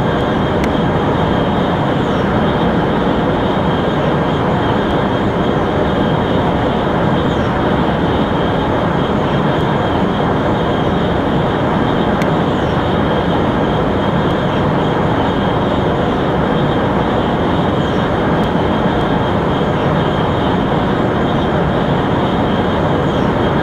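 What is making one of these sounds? A high-speed train roars steadily along the tracks.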